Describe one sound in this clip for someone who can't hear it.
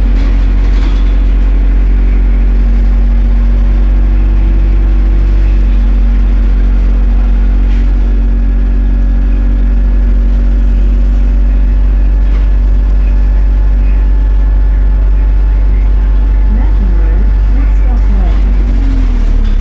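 A bus engine rumbles and hums steadily from inside the bus.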